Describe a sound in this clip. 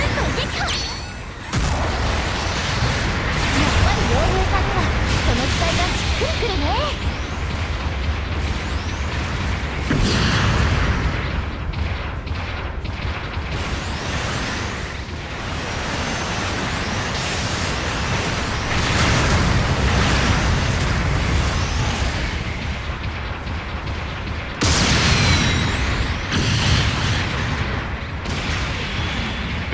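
Thrusters roar loudly as a giant robot boosts.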